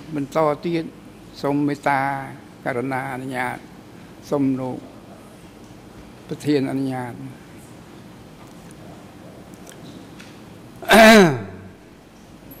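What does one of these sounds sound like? An elderly man speaks slowly into a microphone, in pauses.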